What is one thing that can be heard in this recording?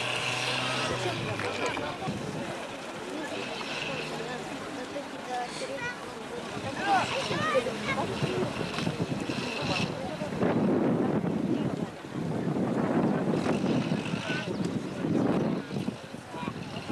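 Men in a crowd outdoors talk and call out to each other.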